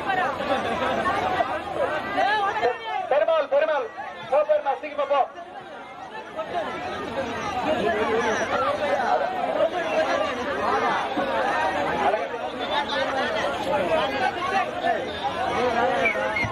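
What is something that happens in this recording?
A crowd of men and women talk and shout all at once nearby.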